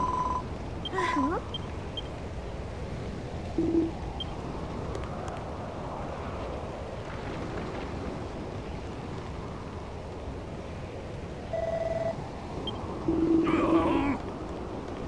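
Short electronic beeps sound in a game.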